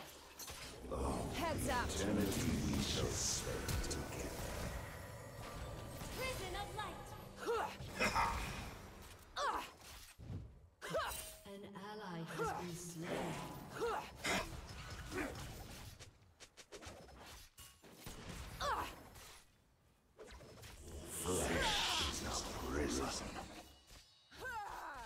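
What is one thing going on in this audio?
Game spells burst and whoosh in a fast fight.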